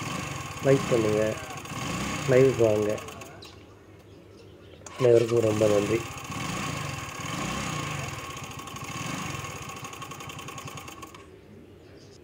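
A scooter engine runs at a steady idle close by.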